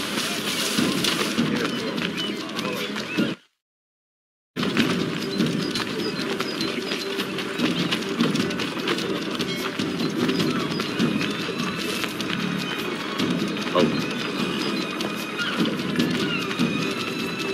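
Footsteps crunch quickly on a dirt path.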